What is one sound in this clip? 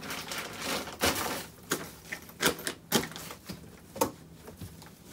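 Objects knock and thump inside a suitcase.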